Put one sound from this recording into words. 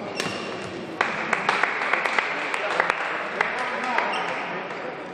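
A crowd applauds in a large echoing hall.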